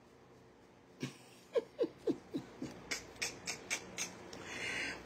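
A man laughs softly in short bursts close by.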